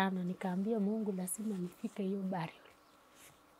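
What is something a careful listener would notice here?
A young woman speaks close by in a shaky, tearful voice.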